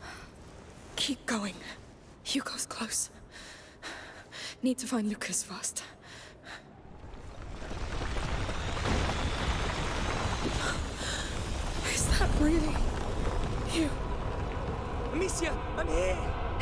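A young woman speaks quietly to herself.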